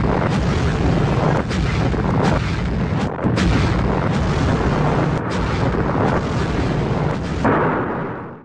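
Fire roars in a huge explosion.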